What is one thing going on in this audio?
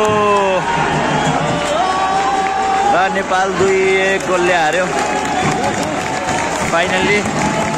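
A large crowd chants and cheers loudly in an open stadium.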